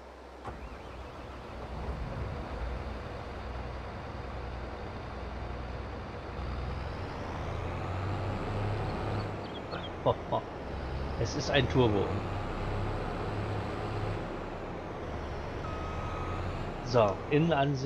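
A combine harvester engine idles with a low, steady rumble.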